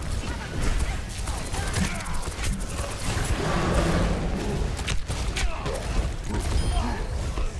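Fiery explosions burst and roar.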